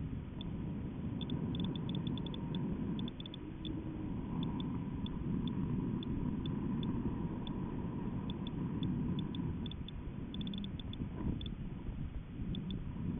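Strong wind rumbles and buffets steadily.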